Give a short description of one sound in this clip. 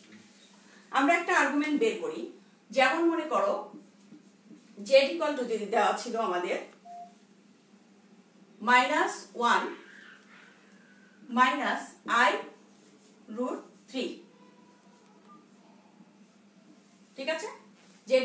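A woman speaks clearly and explains, close by, in short bursts.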